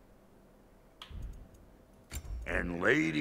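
A game menu clicks softly as options change.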